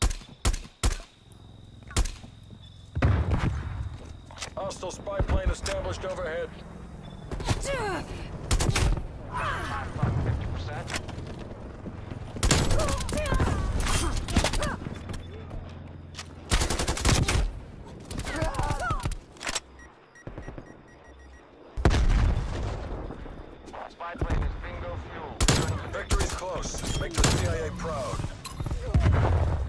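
Rifle shots fire in sharp bursts.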